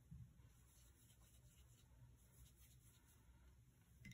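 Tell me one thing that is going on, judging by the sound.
A paintbrush dabs softly on paper.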